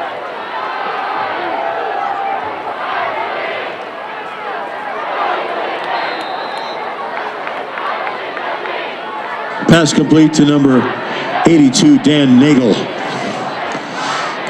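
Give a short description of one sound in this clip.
A crowd cheers and chatters loudly outdoors.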